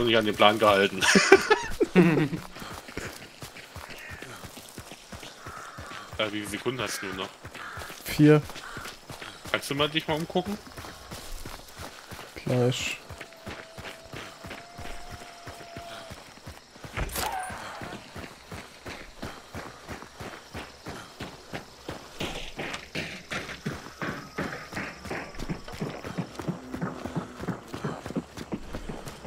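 Footsteps crunch steadily through grass and dirt.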